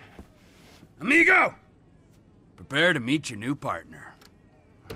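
A man calls out loudly from a short distance.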